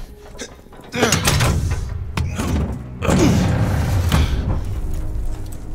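A heavy metal door creaks and scrapes as it is pushed open.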